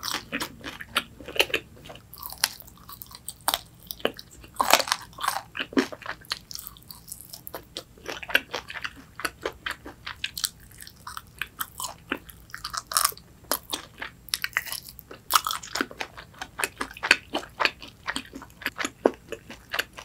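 A young woman chews crunchy fried food close to a microphone.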